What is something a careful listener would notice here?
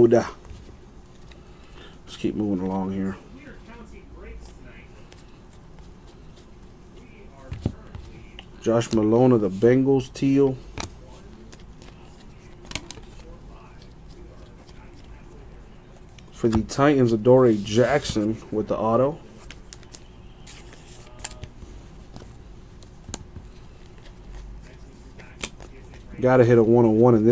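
Trading cards rustle and slide against one another.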